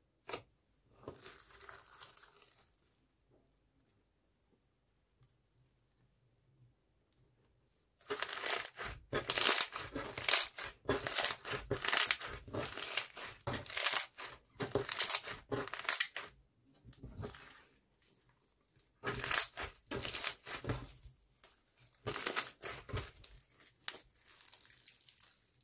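Hands squish and squelch sticky slime, with crackling pops of small beads.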